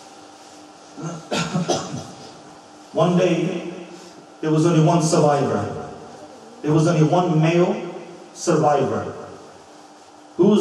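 A man chants in a melodic voice through a microphone, echoing in the room.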